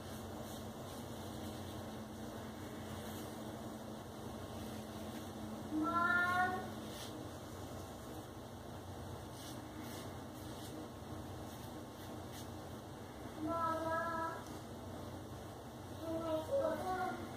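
A razor scrapes across a shaved scalp in short strokes.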